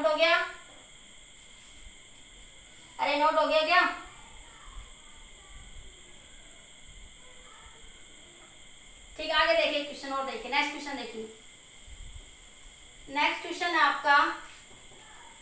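A woman speaks calmly and clearly in short phrases, close by.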